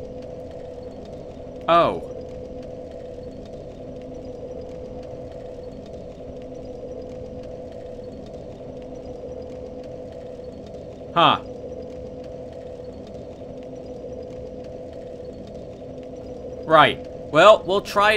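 A fire crackles softly.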